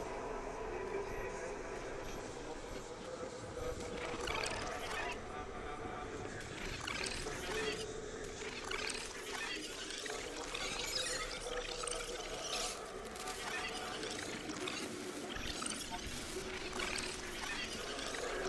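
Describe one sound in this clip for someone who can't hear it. A soft electronic hum drones steadily.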